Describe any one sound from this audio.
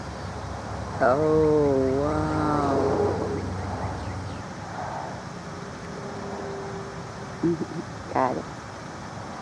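An eagle calls with shrill, chattering cries.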